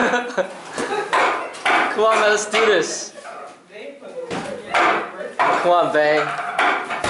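Hands strike a wooden training dummy with quick, sharp knocks.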